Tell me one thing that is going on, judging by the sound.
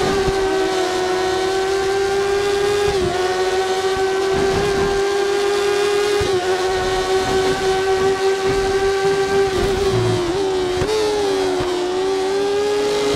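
A racing car engine screams at high revs, dipping briefly at each gear change.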